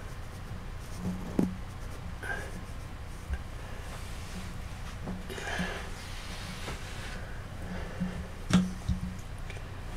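Small parts click and knock as hands handle a figure.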